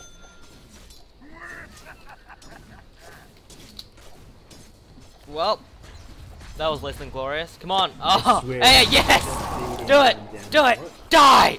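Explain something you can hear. Blades clash and magic spells crackle in a fight.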